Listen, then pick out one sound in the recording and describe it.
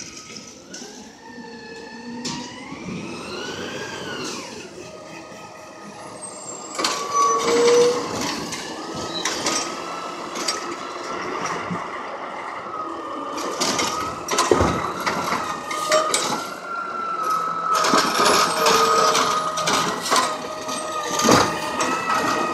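A garbage truck engine rumbles as the truck approaches.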